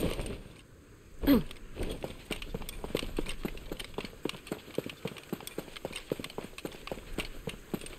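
Footsteps crunch quickly over dirt and rock.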